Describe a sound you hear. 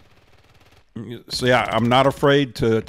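An elderly man speaks with animation through a microphone.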